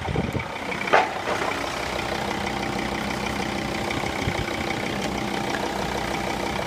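A car engine idles steadily.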